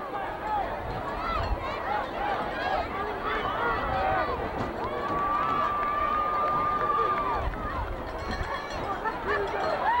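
A large crowd cheers and shouts across an open stadium.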